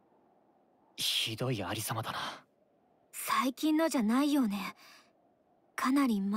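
A young man speaks calmly and close up.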